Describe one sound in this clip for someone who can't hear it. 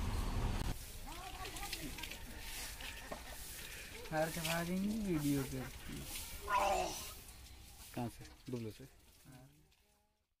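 A young man speaks and laughs close by.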